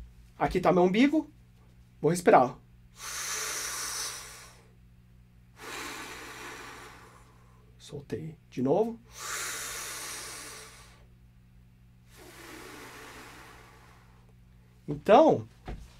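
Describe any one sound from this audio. A man close by makes short voiced sounds with a rising and falling pitch.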